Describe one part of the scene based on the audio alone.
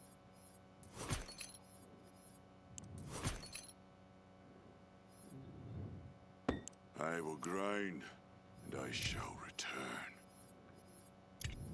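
Video game menu sounds chime as selections change.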